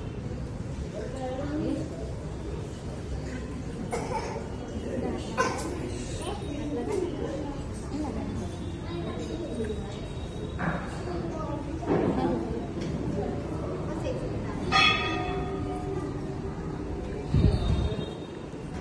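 Men and women talk nearby in a low murmur.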